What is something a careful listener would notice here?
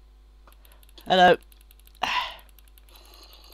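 A monster groans in low, rasping bursts.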